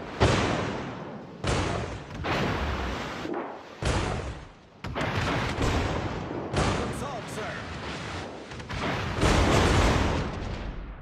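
Heavy naval guns fire in loud booming blasts.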